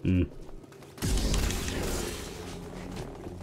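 Sparks crackle and hiss as a glowing blade cuts metal.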